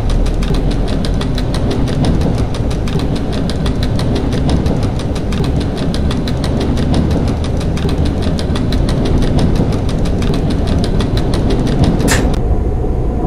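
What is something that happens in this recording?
Train wheels click rapidly over the rail joints.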